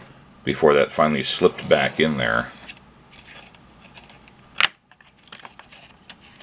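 A circuit board panel clicks softly as it is tilted open.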